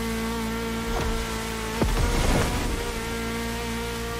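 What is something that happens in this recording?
Water splashes and sprays under a car's tyres.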